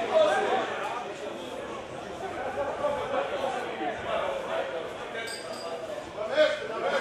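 Men shout and call to each other outdoors.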